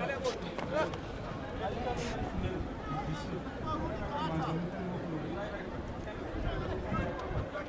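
Spectators chatter and call out in an open-air stadium.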